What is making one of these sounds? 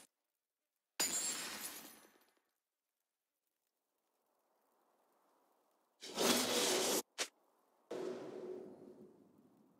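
Video game spells and attacks burst out in loud whooshing blasts.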